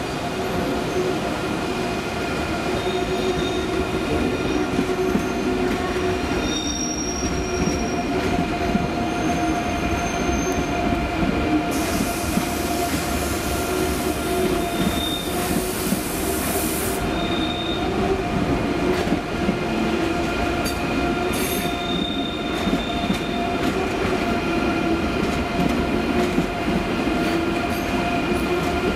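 An electric train rolls slowly past with a steady hum and rumble.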